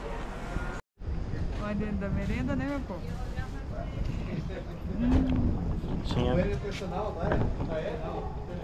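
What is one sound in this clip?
A middle-aged woman talks and laughs close by.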